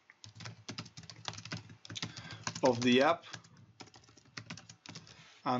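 Keys on a keyboard click rapidly as someone types.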